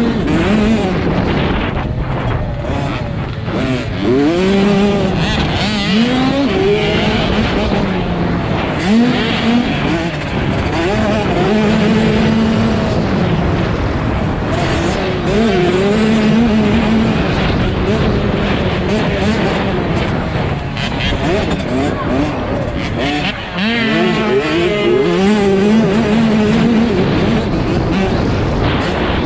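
A dirt bike engine revs and whines up and down close by.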